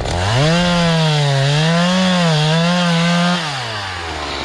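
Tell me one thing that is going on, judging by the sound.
A chainsaw engine roars and wavers while cutting into wood.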